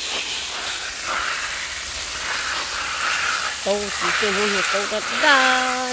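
Water sprays and patters onto leaves.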